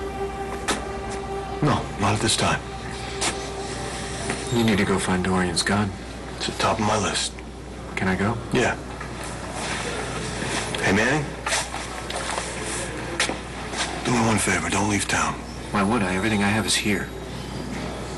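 A second man answers in a low, firm voice.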